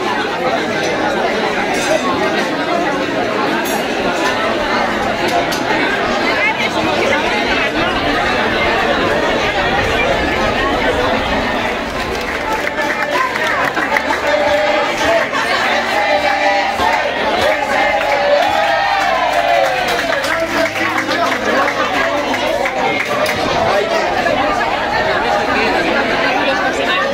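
A large crowd of men and women chatter loudly all at once, close by.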